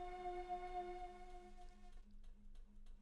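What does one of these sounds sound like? A retro video game jingle plays.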